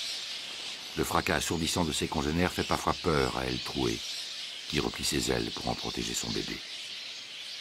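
A bat screeches loudly up close.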